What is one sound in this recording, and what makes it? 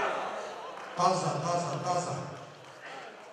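A man shouts out loudly.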